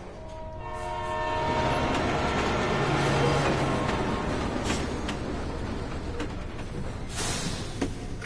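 A train rumbles past.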